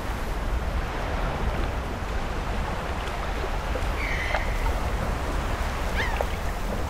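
Waves wash gently onto a beach.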